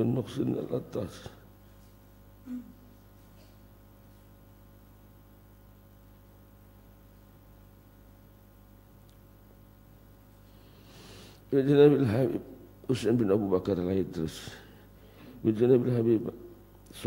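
A middle-aged man chants slowly into a microphone, heard through a loudspeaker, with long pauses between phrases.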